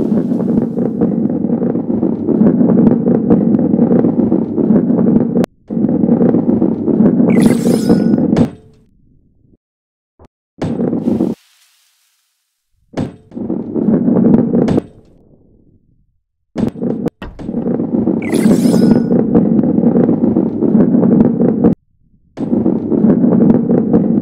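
A ball rolls and rumbles along a track.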